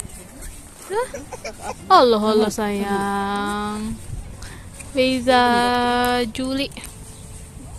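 An elderly woman coos to a baby in a long, sing-song voice close by.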